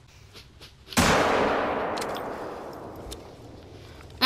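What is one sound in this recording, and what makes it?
A rifle shot cracks and rolls away in a long echo.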